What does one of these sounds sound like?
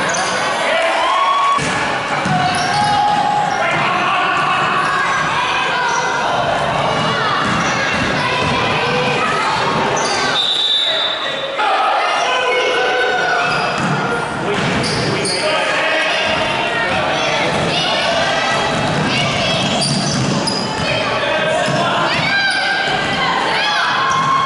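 Spectators chatter and cheer in a large echoing gym.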